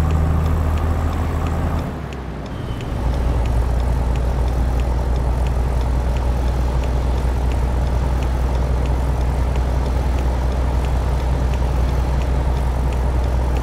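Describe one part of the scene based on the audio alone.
A turn signal ticks at an even pace.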